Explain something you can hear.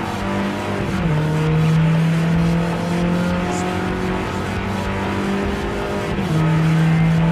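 A racing car shifts up through the gears, the engine note dropping at each shift.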